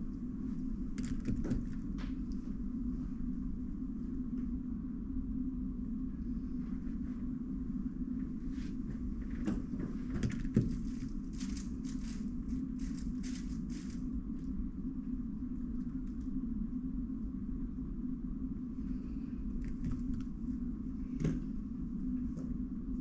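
Plastic puzzle cubes click and rattle as they are picked up and handled.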